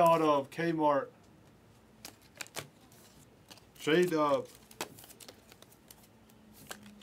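Cardboard trading cards rustle and click as a hand handles them.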